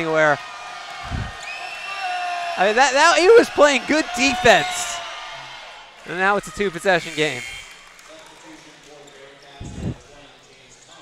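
A basketball bounces on a wooden court floor.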